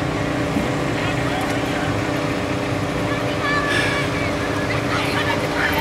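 Children chatter and cheer in high voices.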